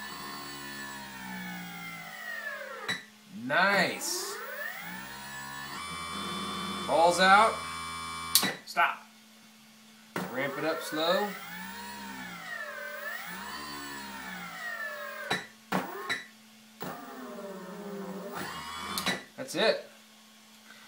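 A small electronic instrument plays a whining tone that glides up and down in pitch.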